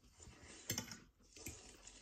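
A fork clinks against a glass plate.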